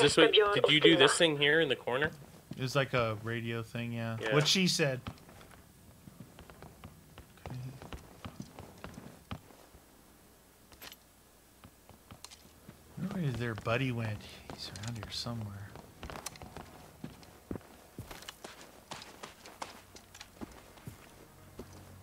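Footsteps thud on wooden floors and stairs.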